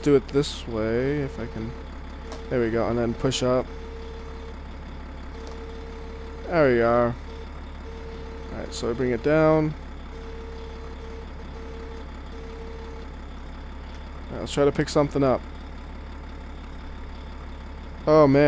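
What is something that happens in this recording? Bricks and rubble clatter as a loader bucket drops them.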